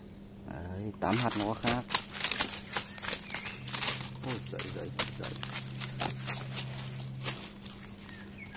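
A fish flops and rustles on dry leaves.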